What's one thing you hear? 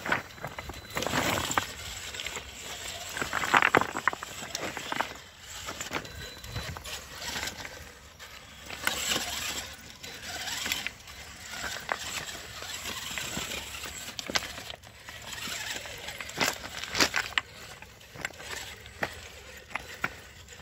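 Loose stones clatter and knock under plastic tyres.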